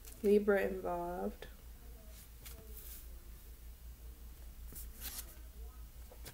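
Paper cards rustle and slap softly onto a table.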